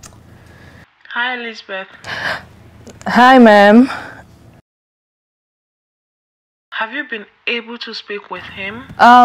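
A young woman speaks cheerfully into a phone, close by.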